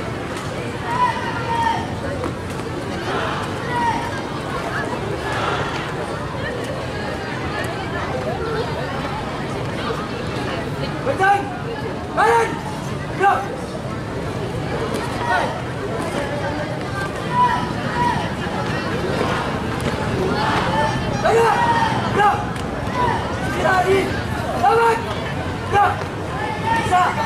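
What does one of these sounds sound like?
A man shouts marching commands loudly.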